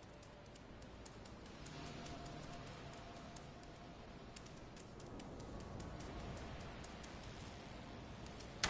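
A cat's paws pad softly on a hard wet ground.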